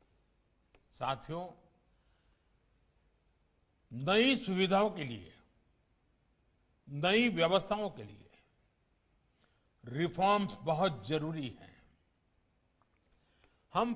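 An elderly man speaks calmly and deliberately through a microphone, in short phrases with pauses.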